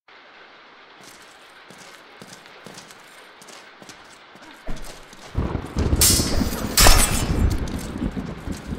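Swords clash and ring with sharp metallic clangs.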